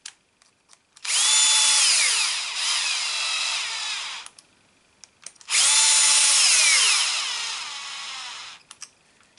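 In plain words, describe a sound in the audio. A cordless drill whirs in short bursts as it drives screws.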